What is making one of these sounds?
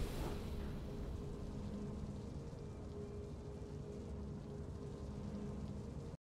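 A triumphant game fanfare plays with a low, rumbling drone.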